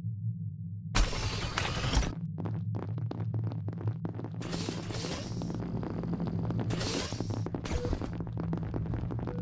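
Soft whooshes sweep by again and again.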